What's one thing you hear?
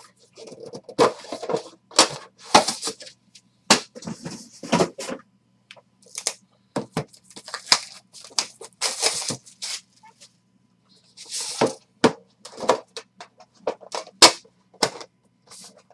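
Card packs knock sharply against a table.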